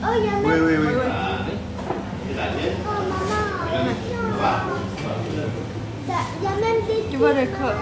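A young child speaks close by with animation.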